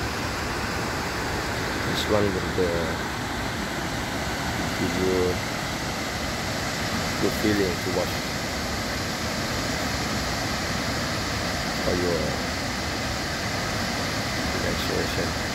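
A waterfall roars steadily over rocks.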